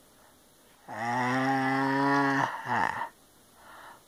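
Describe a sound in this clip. A man makes a long drawn-out groaning sound.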